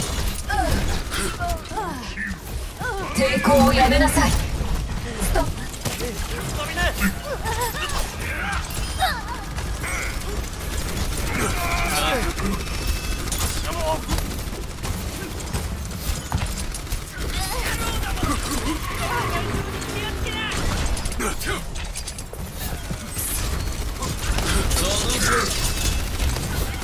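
Explosions and energy blasts boom and crackle.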